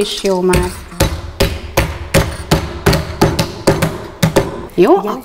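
A wooden mallet pounds repeatedly on a tabletop.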